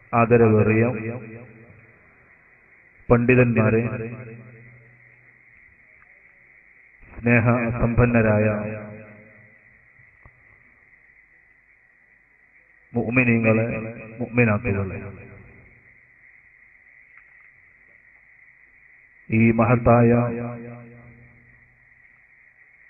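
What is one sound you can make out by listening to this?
A man preaches forcefully into a microphone in short, loud bursts, echoing through a loudspeaker.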